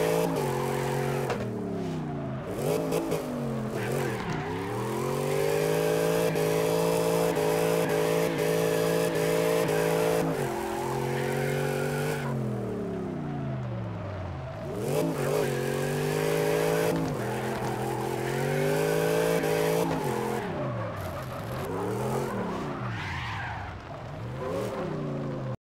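Tyres screech as a car slides sideways around bends.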